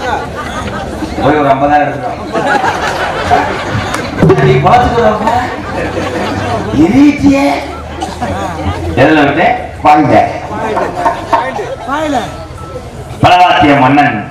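A young man speaks loudly and theatrically through a microphone and loudspeakers.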